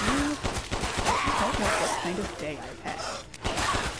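Creatures groan and snarl close by.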